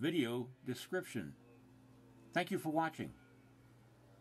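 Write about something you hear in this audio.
A middle-aged man speaks calmly close by, in short phrases.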